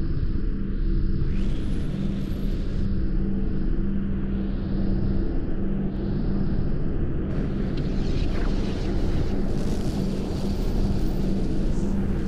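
A spaceship engine hums with a deep, steady drone.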